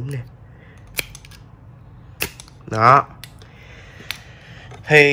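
A plastic buckle clicks and snaps apart.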